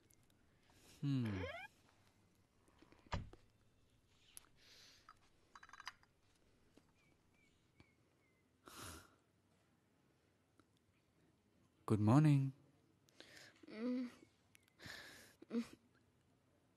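A man speaks softly nearby.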